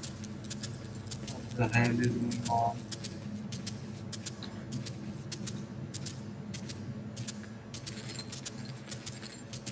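Small quick footsteps patter on a hard floor.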